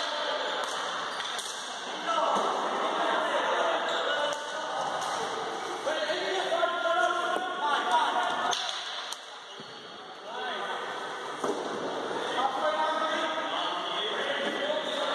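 Sticks clack and scrape on a hard floor in a large echoing hall.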